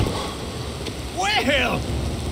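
A man speaks in a low, gruff voice.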